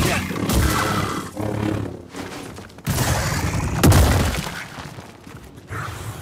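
Blaster bolts fire and hit with sharp bursts.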